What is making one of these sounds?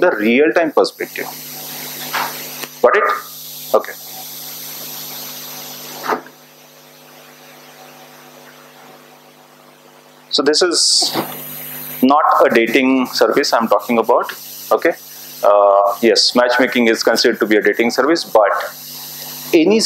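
A man speaks with animation, heard through a microphone in a slightly echoing room.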